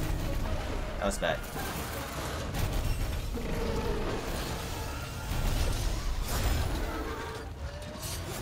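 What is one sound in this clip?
A blade slashes and clangs against a hard hide.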